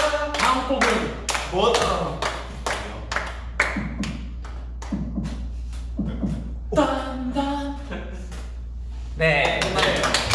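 Young men speak and laugh with excitement close to a microphone.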